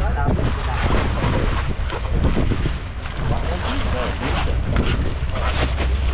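Plastic bags rustle as they are handled.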